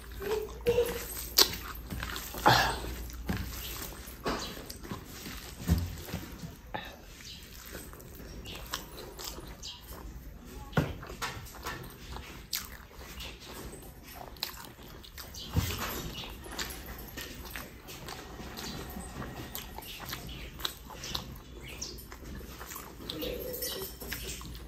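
Fingers squish and mix rice on a metal plate.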